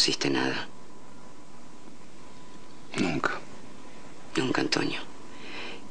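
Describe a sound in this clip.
A man speaks calmly and quietly nearby.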